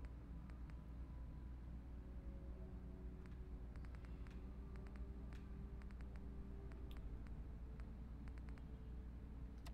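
Soft electronic clicks tick quickly as a menu scrolls.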